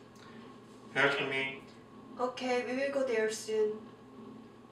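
A man speaks calmly through an intercom loudspeaker.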